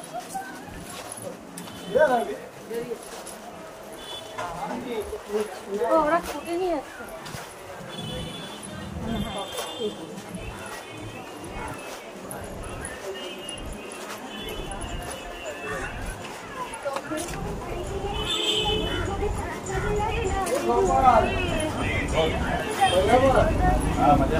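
A woman talks close by, outdoors.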